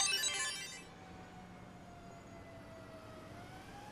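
A siren wails.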